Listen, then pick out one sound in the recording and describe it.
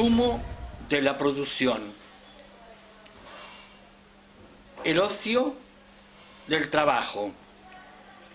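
An elderly man speaks calmly and haltingly, close by, with pauses between phrases.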